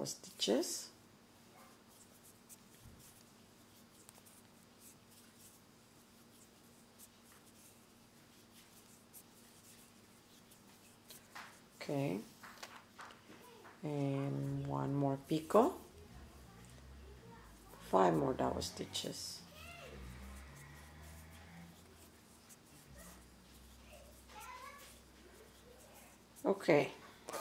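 Thread rustles softly as fingers pull and knot it.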